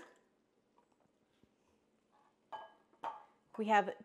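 A spoon taps against a bowl.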